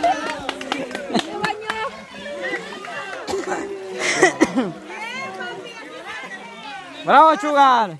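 Water sloshes as a young man wades.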